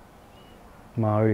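A young man speaks calmly close to a microphone.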